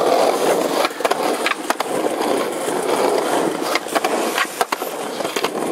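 A skateboard tail snaps and clacks against the ground.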